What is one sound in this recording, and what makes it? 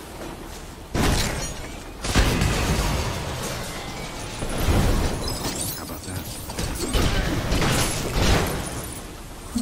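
Explosions boom and debris crashes around.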